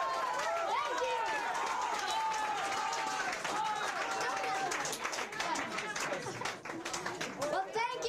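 Men clap their hands in rhythm.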